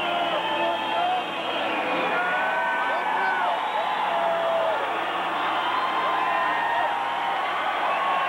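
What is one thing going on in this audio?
A man sings into a microphone through loudspeakers.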